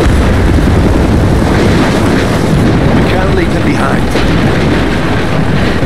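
Heavy rain pours down.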